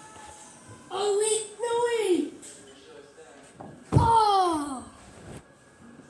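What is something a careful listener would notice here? A teenage boy shouts and yells close by.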